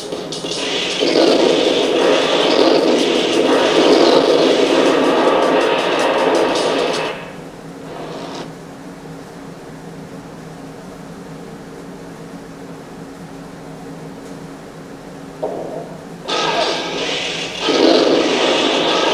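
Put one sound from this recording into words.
Loud explosions roar and crackle.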